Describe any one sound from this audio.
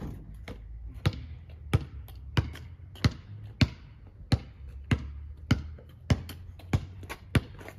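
A basketball bounces hard on pavement in a steady rhythm, outdoors.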